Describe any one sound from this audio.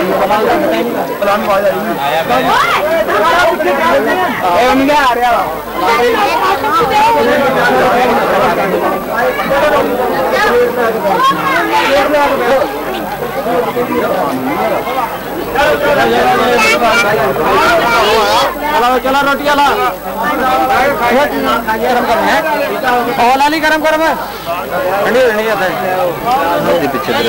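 A crowd of men chatter loudly close by.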